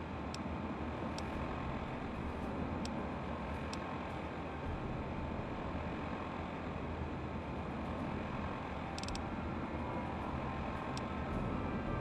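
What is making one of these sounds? Short electronic beeps sound as menu items are selected.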